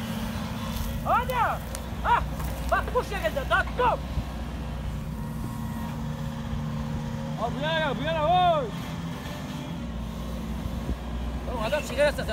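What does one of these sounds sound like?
An excavator arm creaks and squeals as it moves.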